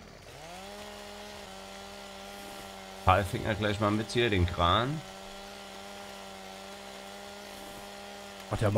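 A chainsaw engine idles with a steady hum.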